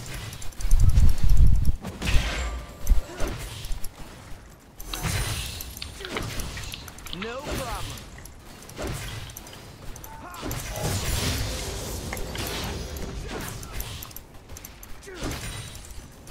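Game weapons strike with sharp impacts.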